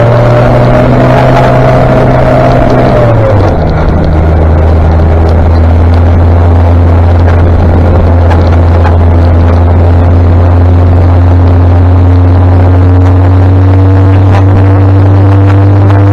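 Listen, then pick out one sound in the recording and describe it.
A motorcycle engine drones close by and drops in pitch with a gear change.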